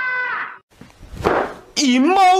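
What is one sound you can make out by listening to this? A young man exclaims loudly, close by.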